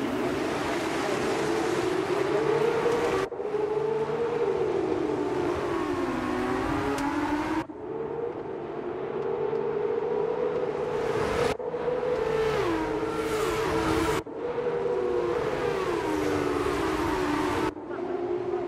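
Racing car engines scream at high revs, rising and falling as the cars shift gears and pass.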